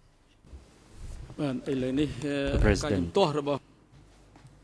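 A second man speaks calmly into a microphone.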